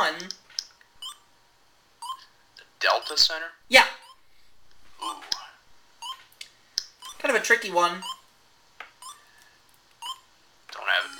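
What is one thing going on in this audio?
An electronic game beeps once each second as a countdown ticks down.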